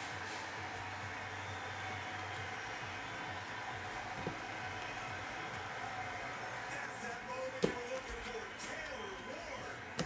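Trading cards rustle and slide against each other in hands.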